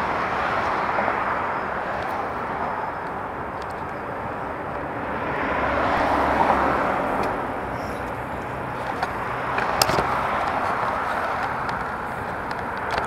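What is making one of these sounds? Wind blows steadily outdoors, rushing and gusting.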